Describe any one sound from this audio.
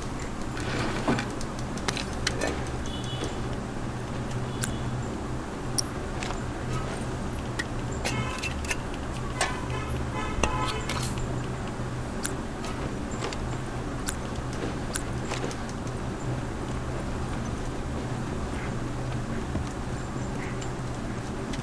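Gear rattles and clinks with each movement.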